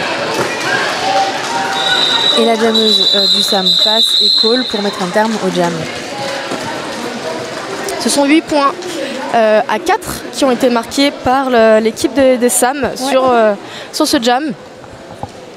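A crowd of spectators murmurs and chatters nearby.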